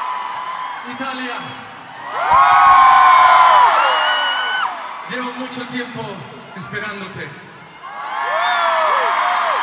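A man sings into a microphone, heard loudly through loudspeakers in a large echoing space.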